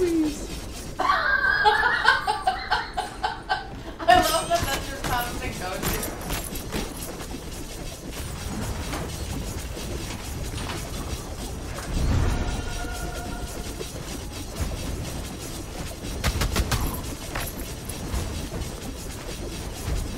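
Quick sword slashes and hits sound from a video game.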